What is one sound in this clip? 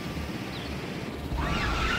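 Gas hisses out in sudden bursts.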